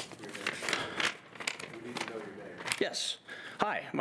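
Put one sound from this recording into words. Sheets of paper rustle.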